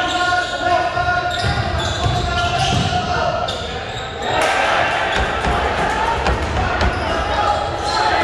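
Sneakers squeak on the gym floor.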